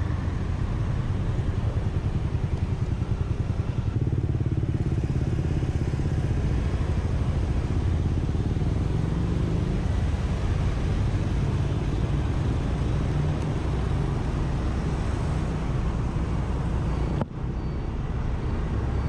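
A motor scooter engine hums steadily up close.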